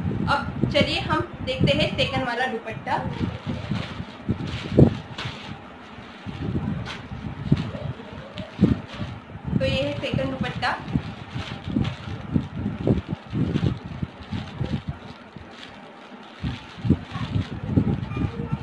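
Plastic packaging crinkles and rustles in a young woman's hands.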